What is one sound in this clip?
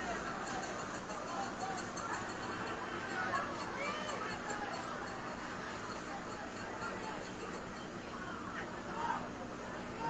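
A large crowd of men and women shouts and chatters loudly outdoors.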